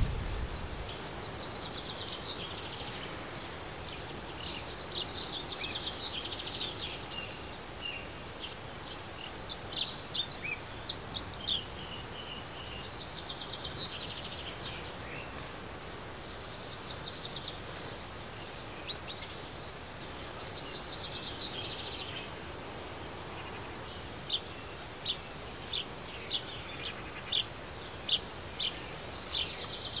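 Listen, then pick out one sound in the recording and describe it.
Small birds chirp and twitter nearby, outdoors.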